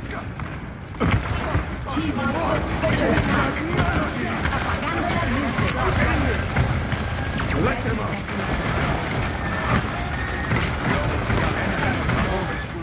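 Rapid gunfire and energy blasts crackle and boom in a loud game battle.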